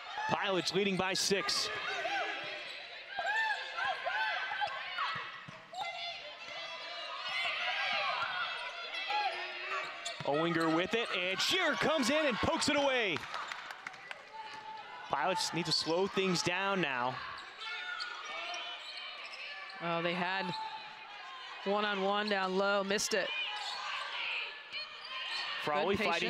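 A basketball thumps as it is dribbled on the court.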